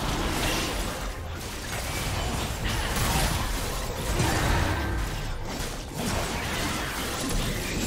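Magic spells whoosh and crackle in a video game battle.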